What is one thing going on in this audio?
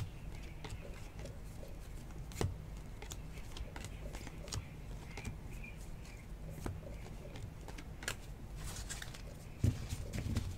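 Trading cards rustle and slide against each other as they are handled.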